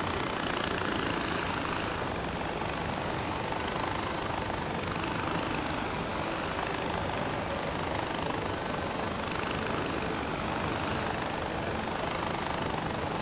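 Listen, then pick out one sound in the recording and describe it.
A pulley whirs steadily along a zip line cable.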